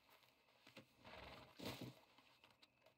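A heavy animal carcass thuds onto the ground.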